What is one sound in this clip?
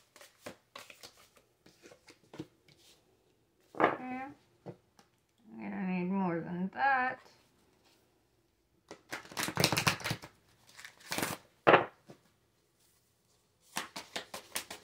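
Cards shuffle and riffle between hands.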